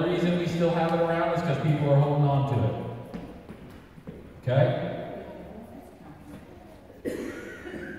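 An older man preaches forcefully through a microphone in a reverberant hall.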